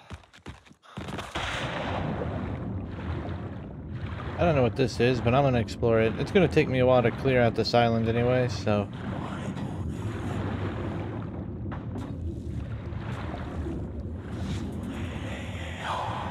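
Water rushes and gurgles in a muffled way, as if heard underwater.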